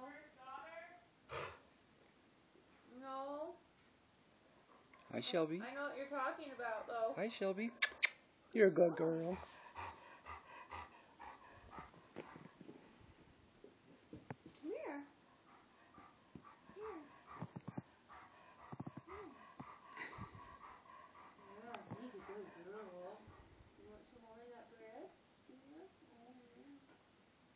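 A young woman talks to a dog nearby in a high, playful voice.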